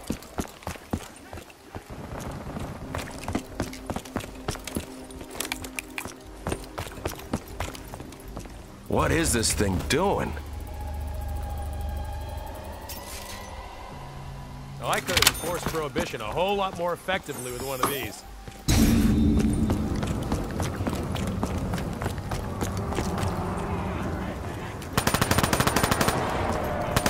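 Footsteps tread on a hard stone floor.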